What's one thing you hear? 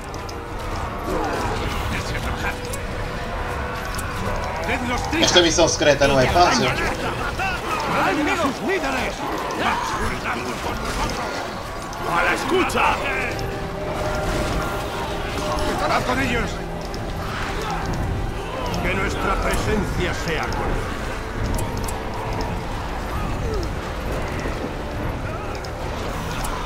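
Soldiers shout in a large battle.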